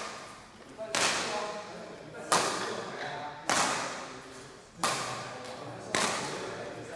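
Badminton rackets smack a shuttlecock back and forth, echoing in a large hall.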